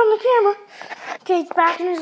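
A plush toy rustles as a hand grips it.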